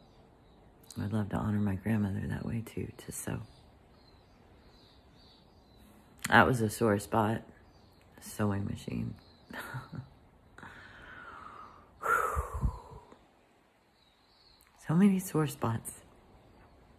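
An older woman speaks calmly and thoughtfully, close up.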